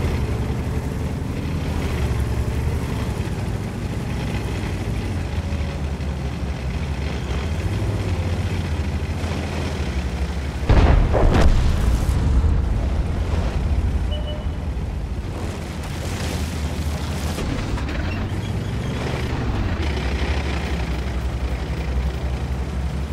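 Tank tracks clatter over the ground.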